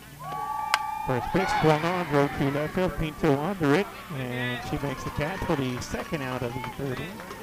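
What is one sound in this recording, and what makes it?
Players cheer and shout loudly from nearby.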